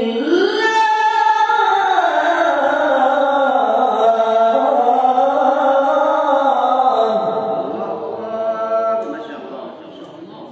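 A man chants loudly through a microphone, his voice echoing in a large room.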